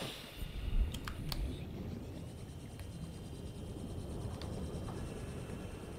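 A small submarine's motor hums.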